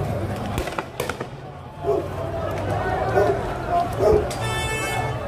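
Firecrackers bang sharply.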